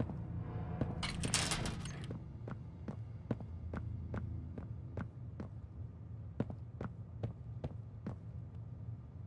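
Footsteps tap at an even pace on a hard floor.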